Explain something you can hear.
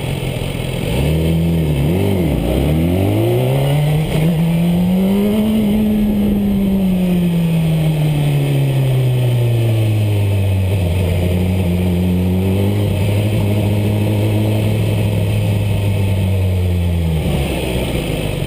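A motorcycle engine revs up and pulls away, its pitch rising and falling through the gears.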